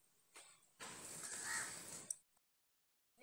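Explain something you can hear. Flatbread sizzles on a hot griddle.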